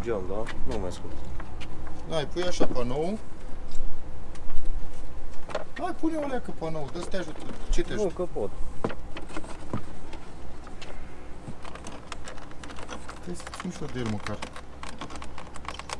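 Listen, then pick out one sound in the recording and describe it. Plastic clips click and snap as a car door panel is pulled off.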